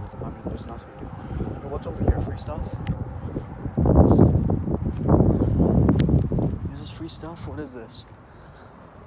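Wind buffets and rumbles on the microphone outdoors.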